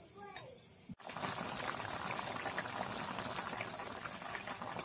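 A stew bubbles and sizzles in a pot.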